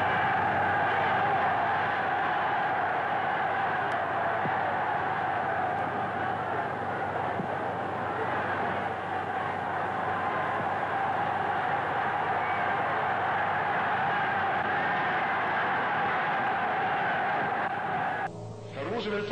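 A large crowd cheers and roars steadily outdoors.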